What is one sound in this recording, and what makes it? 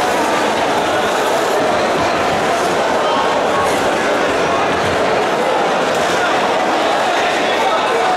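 A large crowd murmurs and chatters in a large echoing hall.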